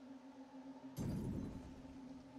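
A fire bursts into flames with a low whoosh.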